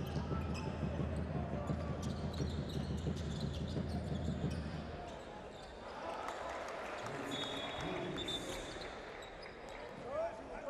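A crowd in a large echoing arena cheers and drums.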